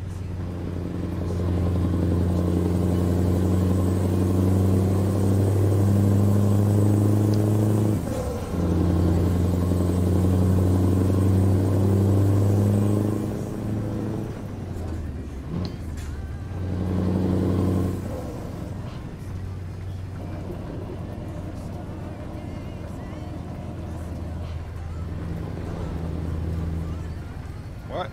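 A truck engine drones steadily, dropping and rising as gears change.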